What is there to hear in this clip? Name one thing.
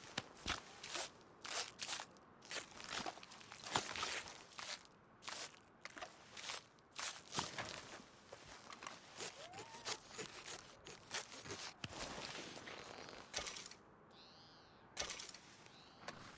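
Wet flesh squelches and tears as an animal is skinned with a knife.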